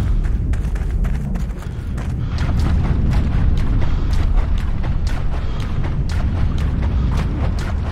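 Water splashes and sloshes with swimming strokes.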